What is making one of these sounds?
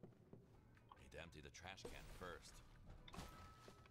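Rubbish bags thump into a metal bin.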